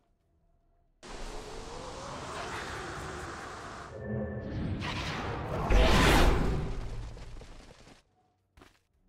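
Magic spell effects whoosh and crackle loudly.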